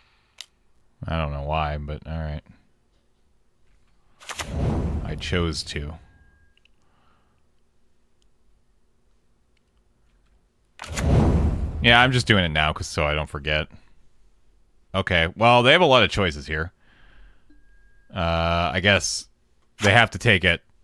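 A man speaks close to a microphone, in short bursts.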